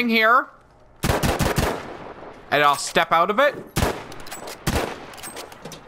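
A rifle fires sharp, loud single shots.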